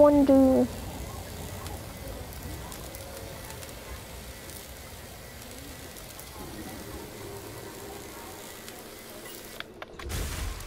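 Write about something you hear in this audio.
A repair tool hums and hisses steadily.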